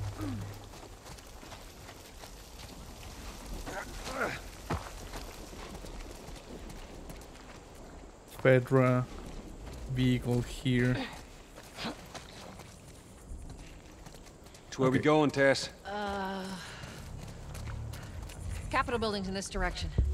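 Footsteps tread slowly over rough ground.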